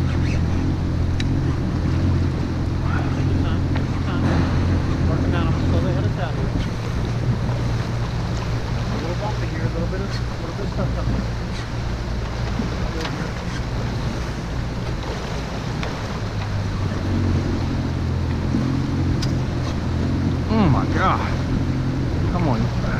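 Water churns and splashes against the hull.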